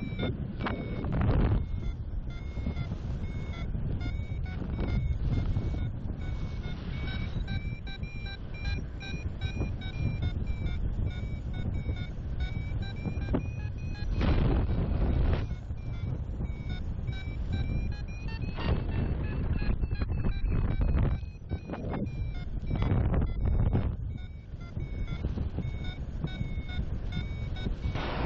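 Wind rushes and buffets loudly in gusts, outdoors high in the air.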